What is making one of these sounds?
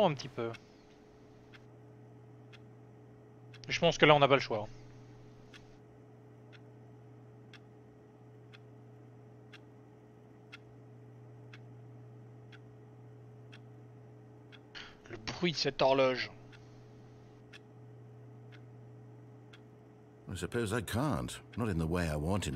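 A wall clock ticks steadily, once a second.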